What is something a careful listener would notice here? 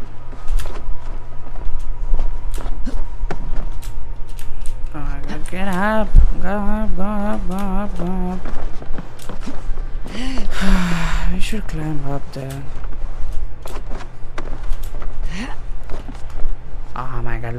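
Hands and boots knock and scrape against wooden planks during climbing.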